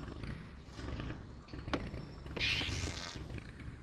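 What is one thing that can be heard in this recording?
Steam hisses in short bursts.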